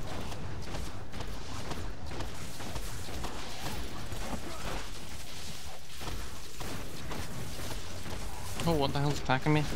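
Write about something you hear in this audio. Weapon blows strike creatures again and again.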